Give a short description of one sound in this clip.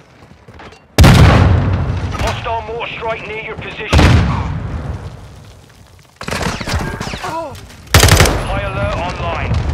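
Gunshots fire in loud, sharp bursts.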